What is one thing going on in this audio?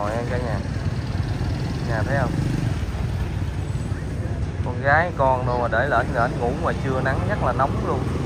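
Motorbike engines hum as they pass close by.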